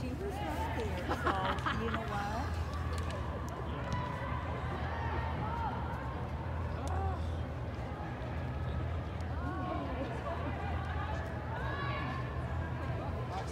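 A crowd of spectators murmurs and calls out in the echoing hall.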